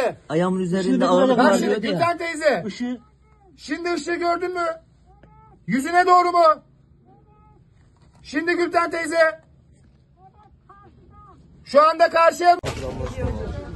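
A man calls out loudly in short bursts, close by.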